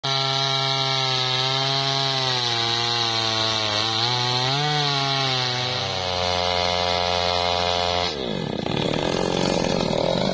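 A chainsaw engine roars loudly and steadily, then suddenly drops in pitch.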